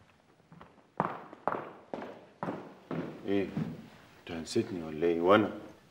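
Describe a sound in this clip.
A young man talks tensely up close.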